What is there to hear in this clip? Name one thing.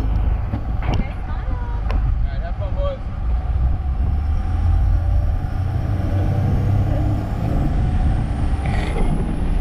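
Water splashes and rushes past a moving boat.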